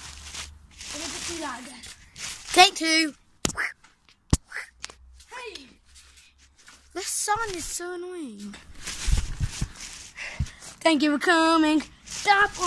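A young boy talks animatedly close to the microphone.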